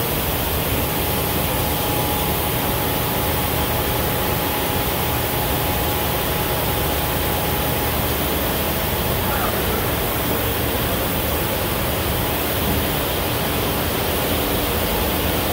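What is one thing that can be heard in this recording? Industrial machinery hums and roars steadily in a large echoing hall.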